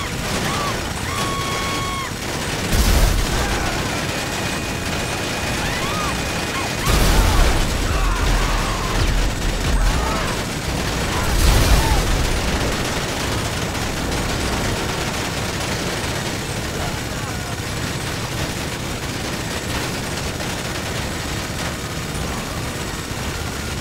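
Flames crackle steadily.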